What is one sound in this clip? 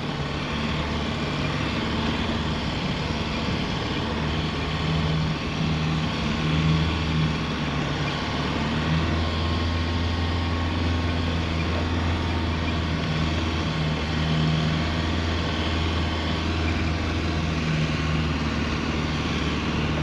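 A vehicle engine rumbles and labours steadily.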